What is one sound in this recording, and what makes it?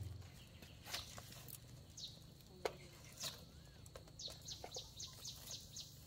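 Firewood scrapes as it is pushed into a fire.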